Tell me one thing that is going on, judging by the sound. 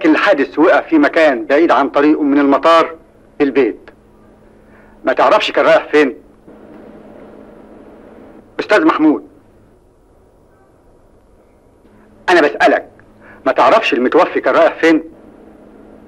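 A middle-aged man speaks sternly and firmly, close by.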